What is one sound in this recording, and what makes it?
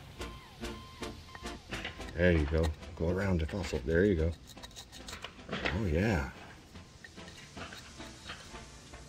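A small tool scrapes and picks at crumbly plaster.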